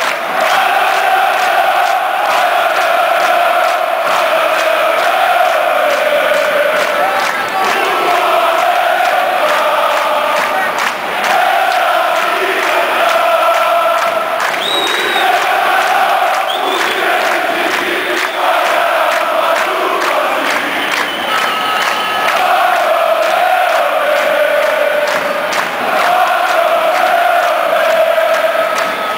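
A large stadium crowd chants and sings loudly in unison.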